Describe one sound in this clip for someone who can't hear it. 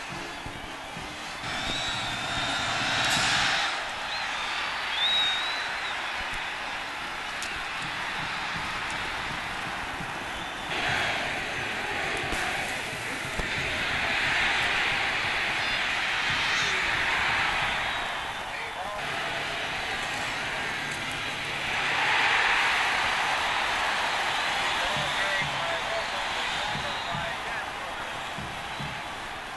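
A large stadium crowd cheers and roars loudly, swelling and fading.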